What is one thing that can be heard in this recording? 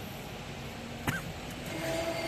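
A push button clicks on a control panel.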